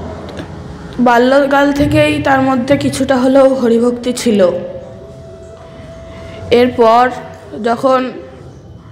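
A young boy sings loudly into a microphone.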